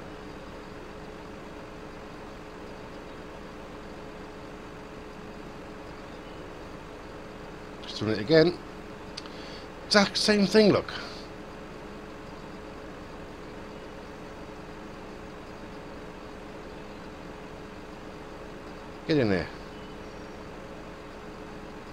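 A heavy machine's engine hums steadily.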